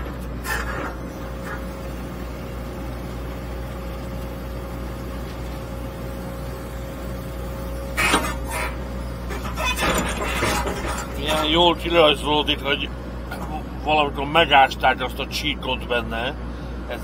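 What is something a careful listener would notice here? A digger's engine rumbles steadily close by.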